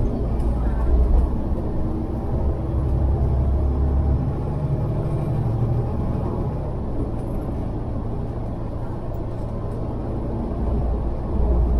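Cars pass by on the road.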